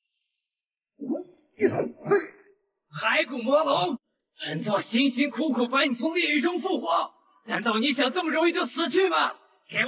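A man speaks in a deep, menacing voice.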